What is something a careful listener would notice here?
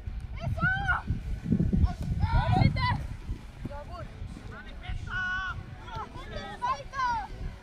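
Young boys shout to each other outdoors.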